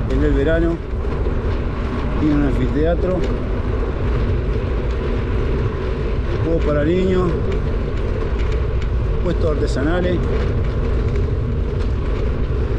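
Wind rumbles steadily against a microphone outdoors.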